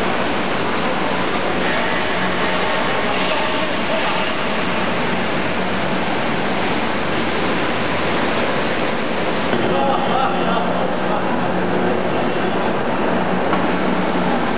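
Industrial machinery roars steadily in a large echoing hall.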